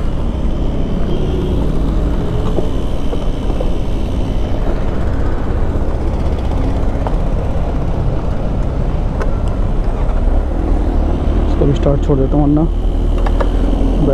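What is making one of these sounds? Plastic motorcycle parts click and rattle as they are handled.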